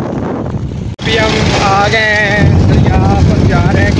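A young man sings loudly close by.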